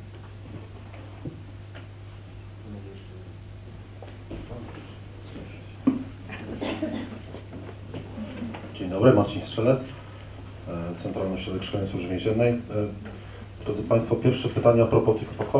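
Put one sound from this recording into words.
A man speaks through a microphone in a large, echoing hall.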